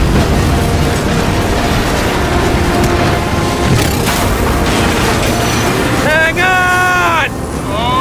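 Explosions boom and debris crashes.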